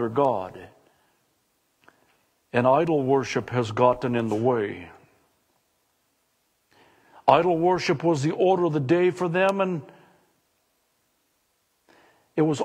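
A middle-aged man preaches with feeling over a microphone, with pauses between phrases.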